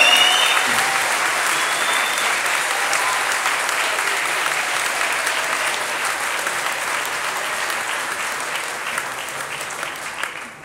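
An audience applauds loudly in a large hall and slowly fades.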